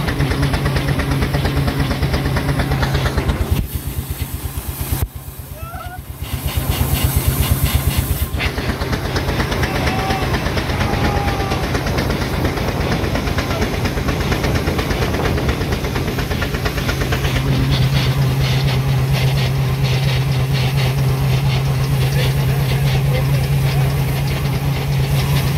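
An engine rumbles and clatters with a low steady drone.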